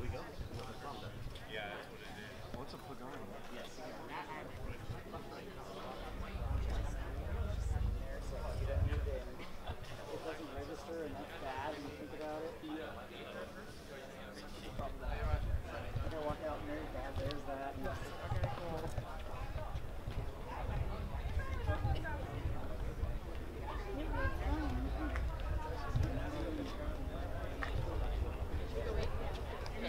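Several men and women chat nearby outdoors.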